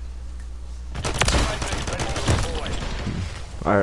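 Pistols fire in quick bursts.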